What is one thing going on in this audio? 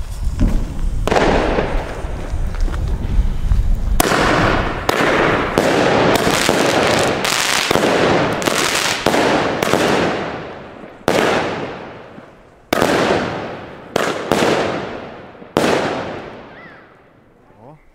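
Fireworks launch one after another with loud bangs that echo away.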